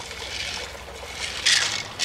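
Water in a shallow stream flows gently.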